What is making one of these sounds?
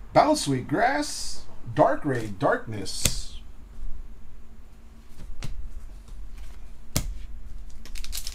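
Trading cards slap and shuffle in hands.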